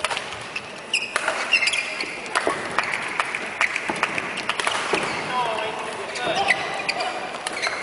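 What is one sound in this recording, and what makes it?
Rackets smack a shuttlecock back and forth in a quick rally.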